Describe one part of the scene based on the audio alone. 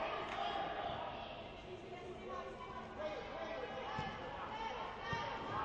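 Players' shoes squeak on a hard indoor court in a large echoing hall.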